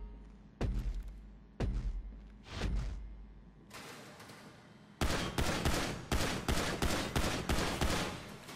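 Pistol shots crack one after another and echo.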